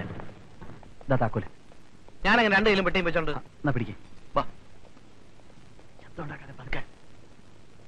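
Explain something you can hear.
A man speaks sharply nearby.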